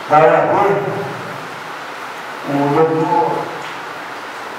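A man speaks into a microphone in a large echoing hall, heard over loudspeakers.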